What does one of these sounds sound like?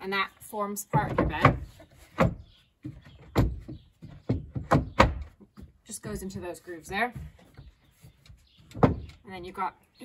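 Wooden boards knock and clatter as they are slid and laid down.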